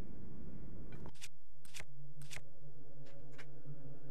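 Short game menu clicks sound in quick succession.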